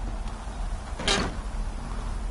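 A wooden door bangs shut.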